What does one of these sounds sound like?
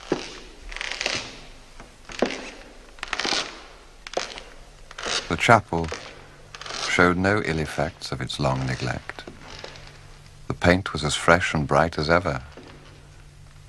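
Footsteps echo slowly across a hard floor in a large hall.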